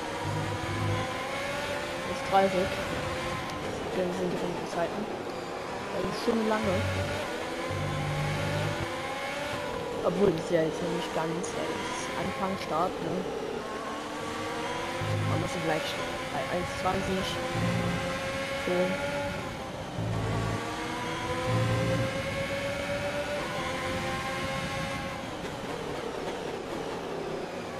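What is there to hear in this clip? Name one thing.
A racing car engine screams at high revs, rising and falling as the gears shift.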